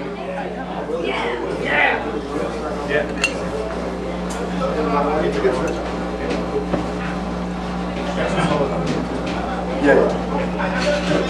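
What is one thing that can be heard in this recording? Drums and cymbals crash and tap.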